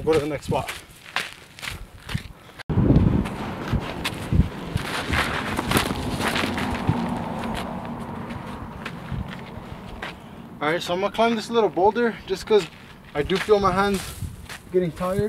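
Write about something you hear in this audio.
Footsteps crunch on dry gravel and brush.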